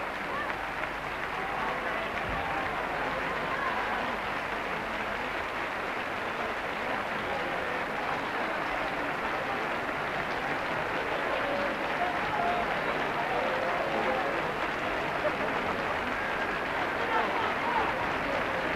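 A large brass band plays a slow piece outdoors, with a wide open sound.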